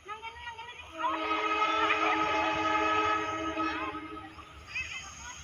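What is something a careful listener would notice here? A train horn sounds loudly and steadily in the distance.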